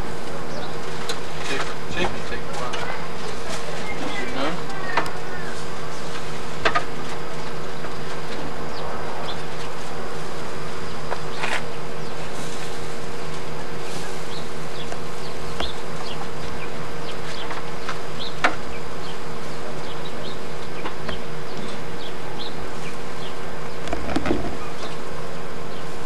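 A metal fork scrapes and taps on a grill grate.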